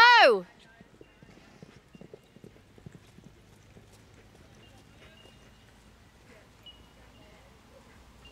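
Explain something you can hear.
A horse gallops, its hooves thudding on soft dirt.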